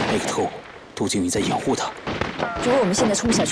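A young man speaks in a low, tense voice.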